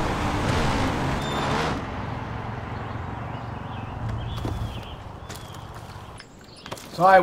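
A quad bike engine drones as it drives.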